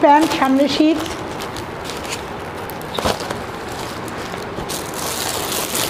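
Paper and plastic packaging rustles and crinkles.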